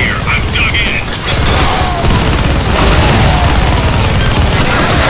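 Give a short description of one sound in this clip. A rotary machine gun fires in a rapid, roaring stream.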